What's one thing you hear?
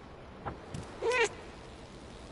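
A cat meows loudly once.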